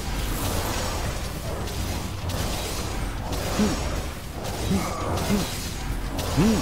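Sword slashes and energy blasts crash and whoosh in quick succession.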